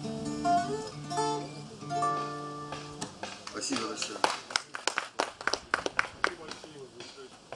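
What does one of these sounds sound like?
An acoustic guitar strums chords and ends with quick final strums.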